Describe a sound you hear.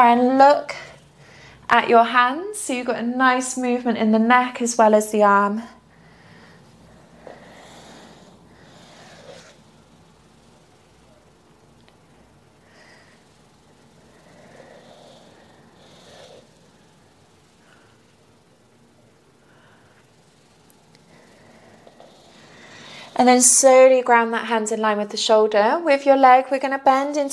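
A young woman speaks calmly and clearly close to a microphone.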